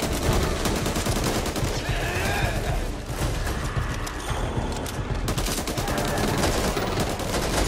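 Zombies snarl and groan close by.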